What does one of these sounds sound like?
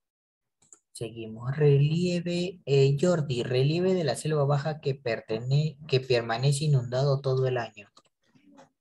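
A man speaks steadily over an online call.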